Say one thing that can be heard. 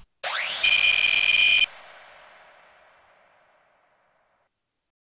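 A game's electronic whoosh rises into a bright ringing tone, then fades away.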